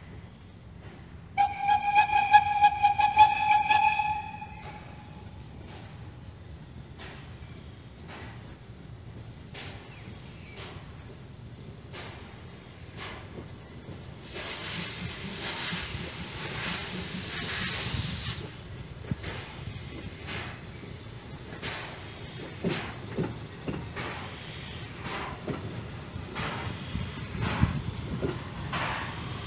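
A steam locomotive chuffs in a steady rhythm, growing louder as it approaches.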